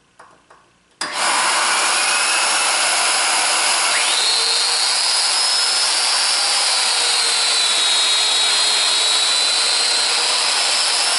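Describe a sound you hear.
A power joiner whirs loudly as it cuts into wood.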